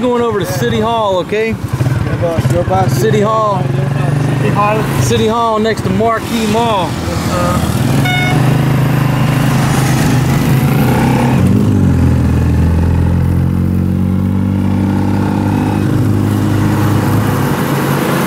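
A motorcycle engine drones steadily.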